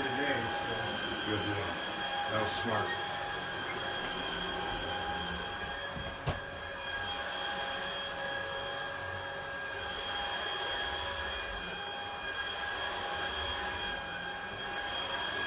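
A vacuum cleaner hums steadily across carpet.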